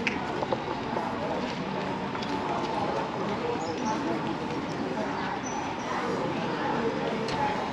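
A town street hums with distant outdoor noise.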